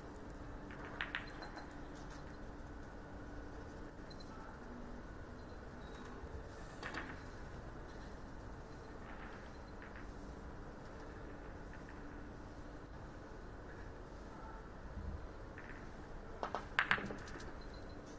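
Billiard balls clack against each other.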